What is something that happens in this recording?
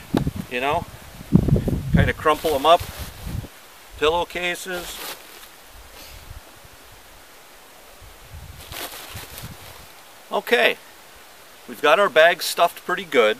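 A man talks calmly and close by, outdoors.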